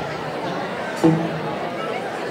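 A drum thumps once.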